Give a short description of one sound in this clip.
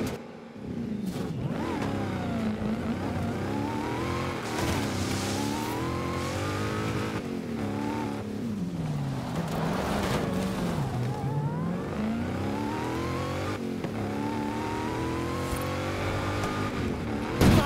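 A car engine revs up and down as it races.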